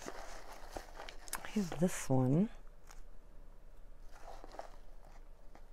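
Paper pieces rustle as hands rummage through a box.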